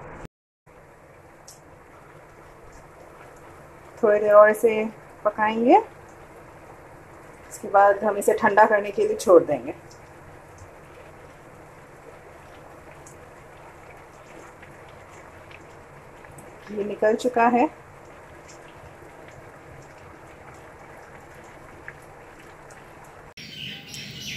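Ghee sizzles and bubbles as it simmers in a pan.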